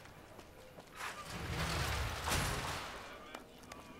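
A heavy metal gate rattles open.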